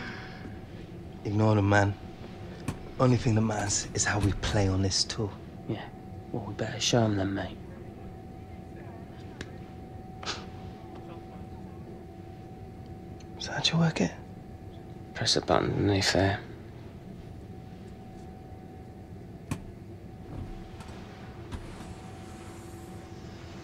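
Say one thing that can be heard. A steady low hum of an aircraft cabin drones throughout.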